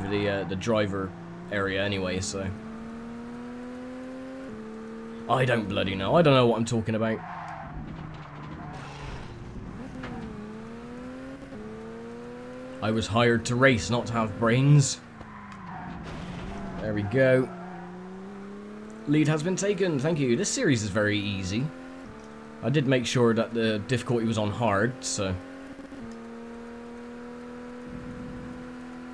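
A racing car engine hums steadily, its pitch rising and dropping with gear changes.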